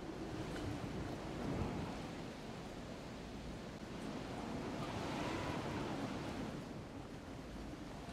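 Wind rushes steadily past a glider descending through the air.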